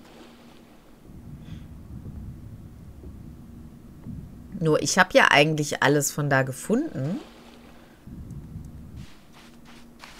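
Water swishes in a low, muffled rush.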